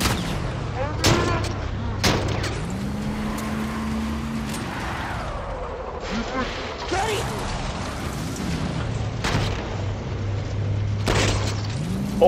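A pistol fires sharp gunshots.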